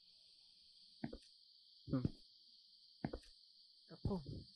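Footsteps thud on a hard floor at a slow pace.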